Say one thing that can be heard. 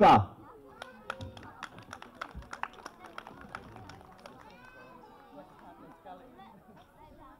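Young children chatter outdoors.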